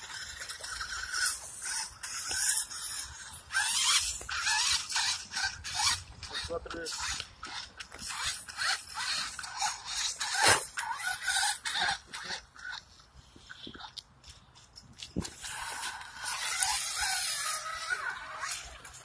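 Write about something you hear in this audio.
Toy car tyres splash and churn through mud and water.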